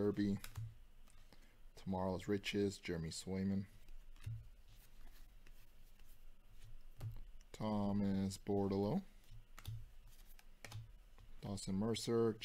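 Trading cards slide and flick against each other in the hands.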